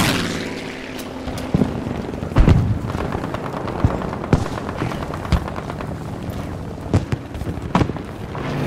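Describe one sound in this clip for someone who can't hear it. Gunshots crack repeatedly in the distance.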